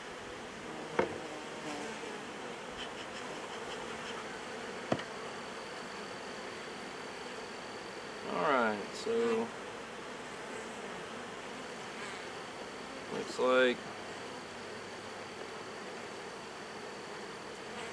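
A metal hive tool scrapes and knocks against wooden hive frames.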